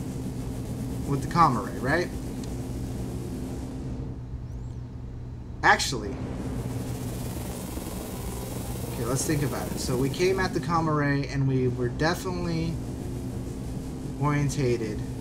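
A spacecraft engine hums low and steady.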